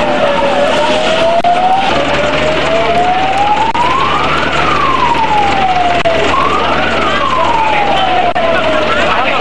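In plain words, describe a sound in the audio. A siren wails nearby, rising and falling.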